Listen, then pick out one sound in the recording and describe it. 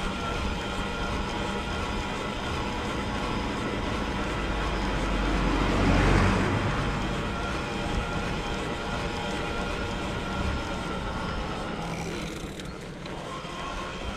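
Wind rushes steadily past the microphone.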